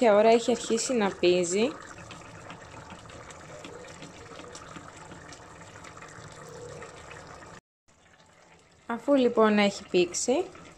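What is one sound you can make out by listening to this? A whisk scrapes and swishes through thick liquid in a metal pot.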